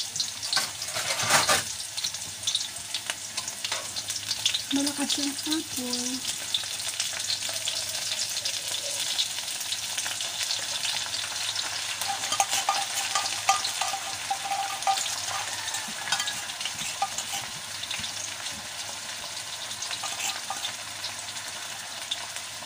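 Food sizzles steadily in a frying pan.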